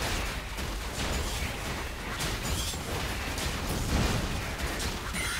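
Game hits land with sharp impacts.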